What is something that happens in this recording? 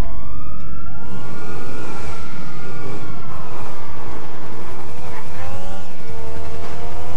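A motorcycle engine revs and roars.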